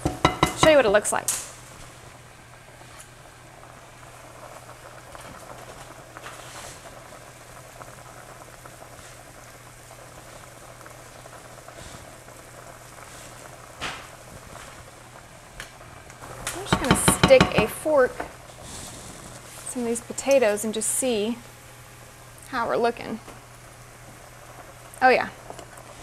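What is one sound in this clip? Food sizzles softly in a pan.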